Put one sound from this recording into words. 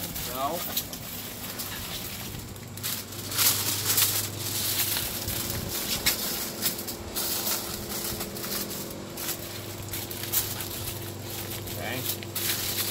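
Aluminium foil and paper crinkle and rustle as they are folded.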